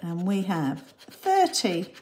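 A coin scratches across a card.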